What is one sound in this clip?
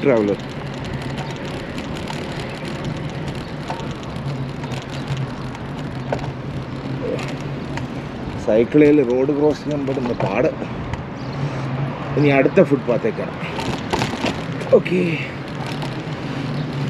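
A mountain bike rolls along an asphalt road.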